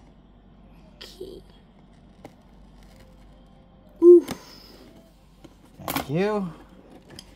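A hand handles a cardboard box with faint knocks and rustles.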